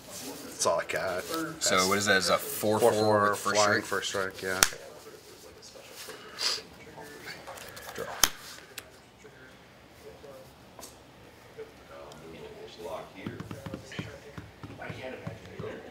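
Playing cards slide and tap on a soft mat.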